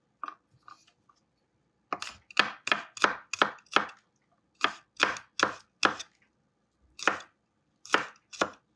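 A knife chops garlic on a wooden board with sharp, quick knocks.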